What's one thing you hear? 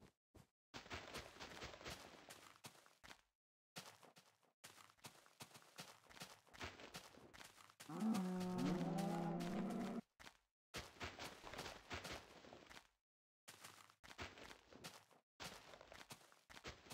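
Footsteps crunch on grass in short bursts.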